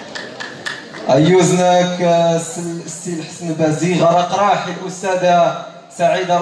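A man speaks loudly through a microphone and loudspeakers in an echoing hall.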